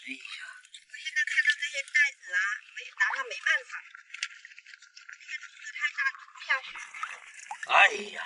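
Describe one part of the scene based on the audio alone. Water sloshes and splashes close by.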